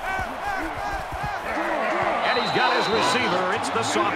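Football players thud together in a tackle.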